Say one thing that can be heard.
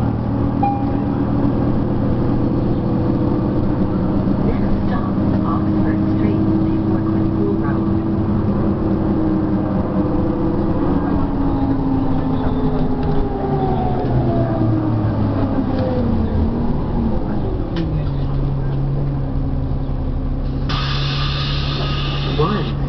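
The diesel engine of an articulated city bus drones from inside as the bus drives and slows.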